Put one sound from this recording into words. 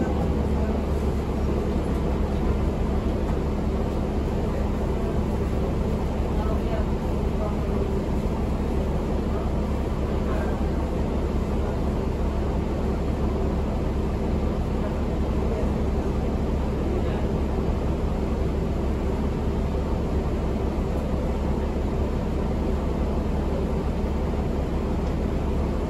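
A bus rattles and creaks as it rolls along.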